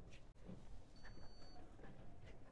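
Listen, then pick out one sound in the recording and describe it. A card reader gives a short high beep.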